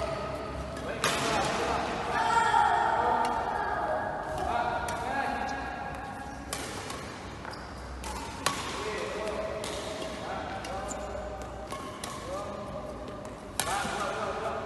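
Rackets smack a shuttlecock again and again in a large echoing hall.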